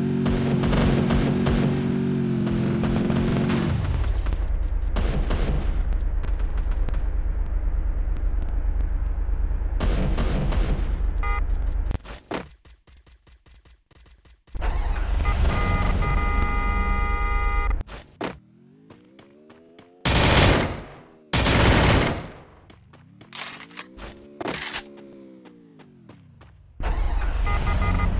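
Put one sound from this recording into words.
A motorcycle engine revs and idles.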